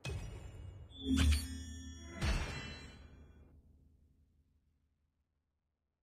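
A triumphant game jingle booms, rings out and slowly fades.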